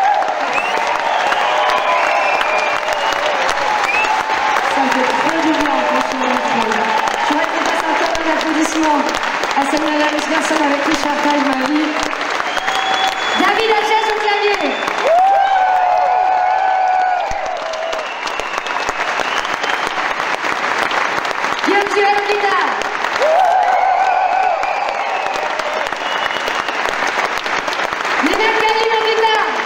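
A woman sings into a microphone through loudspeakers in a large echoing hall.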